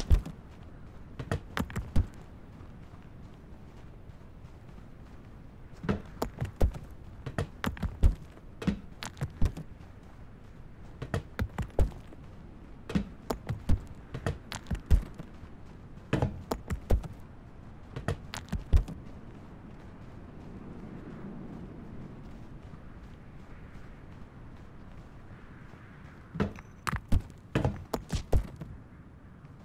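Hammer blows knock on wood in quick bursts.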